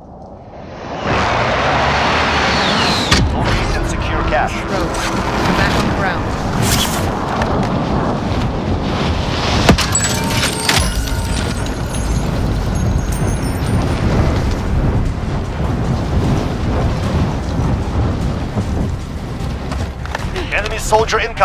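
Wind rushes loudly past during a fast fall through the air.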